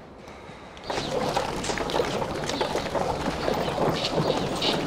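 A horse-drawn carriage rolls by outdoors.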